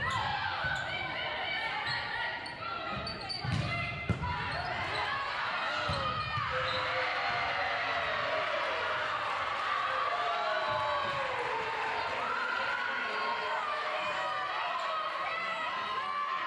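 Young women call out and shout to each other.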